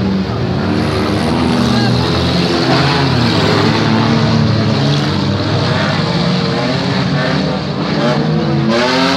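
Several car engines roar and rev loudly nearby.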